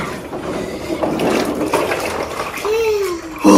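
Water sloshes and splashes in a tub.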